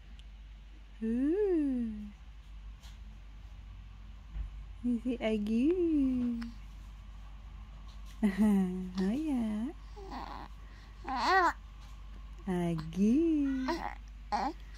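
A baby coos and babbles close by in short, rising and falling bursts.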